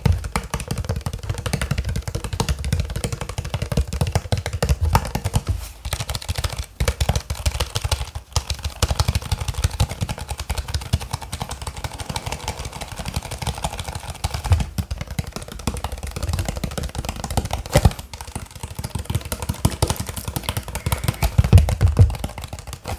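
Fingers squeeze a plastic water bottle, making it crackle and crinkle close up.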